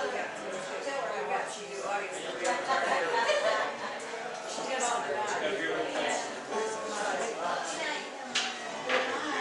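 Several adult men talk over one another nearby in a room with some echo.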